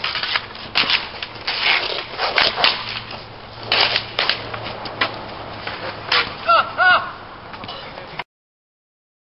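Hockey sticks clack and scrape on pavement outdoors.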